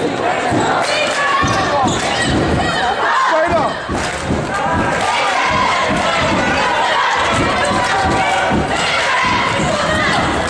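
A basketball bounces with dull thumps on a wooden floor.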